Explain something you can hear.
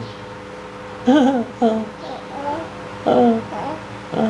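A baby coos and babbles.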